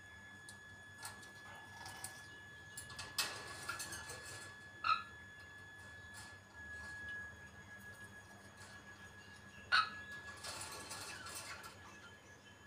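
A parrot makes soft chirps and clicks.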